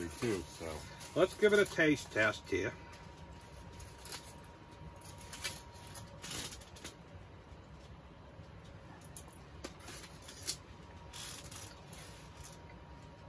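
Foil crinkles and rustles.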